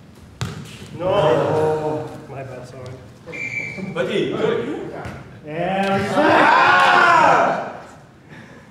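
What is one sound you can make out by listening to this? Young men shout and cheer loudly.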